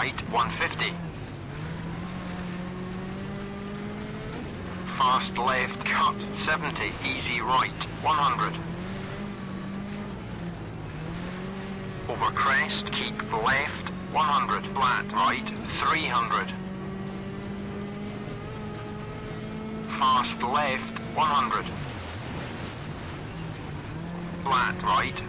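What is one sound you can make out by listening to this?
A man speaks in short, quick bursts close to a microphone.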